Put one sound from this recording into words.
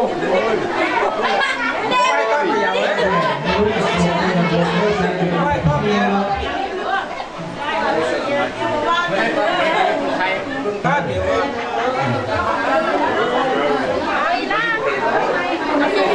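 Several men and women chatter nearby.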